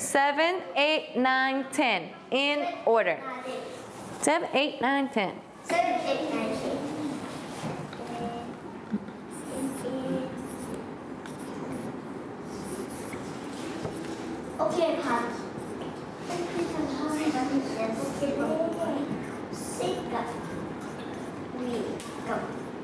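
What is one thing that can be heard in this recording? A young woman speaks clearly and with animation nearby.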